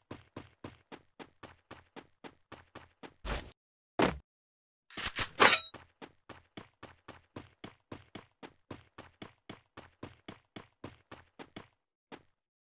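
Quick footsteps thud steadily on grass.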